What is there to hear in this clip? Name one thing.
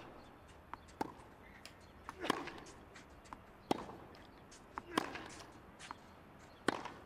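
Tennis balls are struck sharply with rackets in a rally.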